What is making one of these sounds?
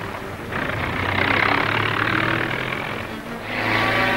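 Jeep engines rumble as the vehicles drive along a road.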